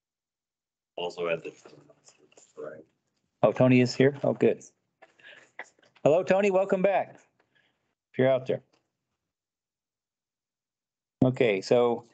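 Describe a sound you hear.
A man speaks calmly in short bursts, heard through an online call.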